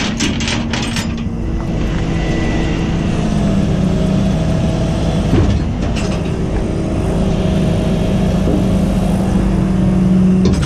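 A train rumbles past close by with a steady droning hum.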